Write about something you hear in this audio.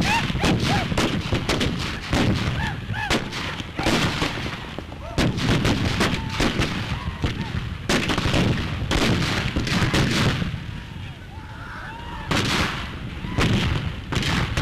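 Gunshots crack repeatedly outdoors.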